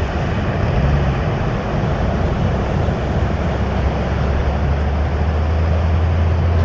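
Waves break and wash ashore steadily.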